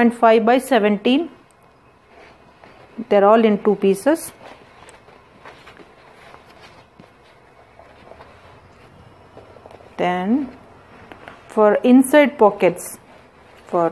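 Sheets of paper rustle and crinkle as hands shift them.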